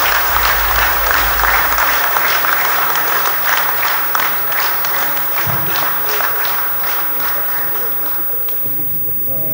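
An audience applauds in a large hall, then the clapping fades.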